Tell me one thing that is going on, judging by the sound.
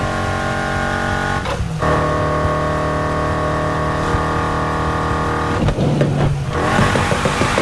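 A car engine roars at high revs, dropping briefly as the gears shift.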